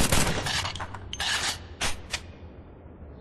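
A pistol is reloaded with metallic clicks.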